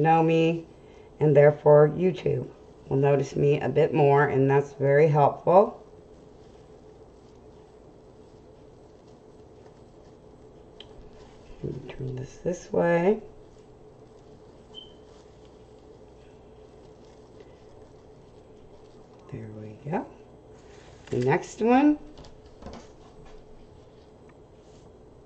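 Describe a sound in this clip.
Mesh ribbon rustles and crinkles as hands work it.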